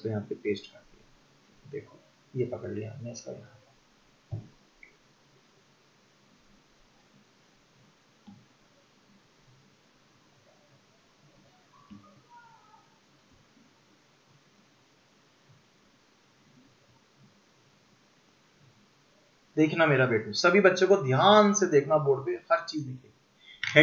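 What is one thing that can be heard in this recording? A young man speaks close to a microphone, explaining with animation.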